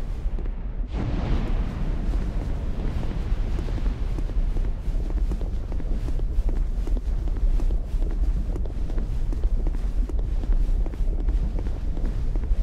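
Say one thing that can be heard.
Armoured footsteps clank on stone as a knight runs.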